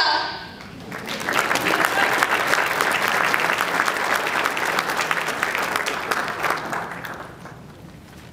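An audience applauds loudly in a large hall, then dies down.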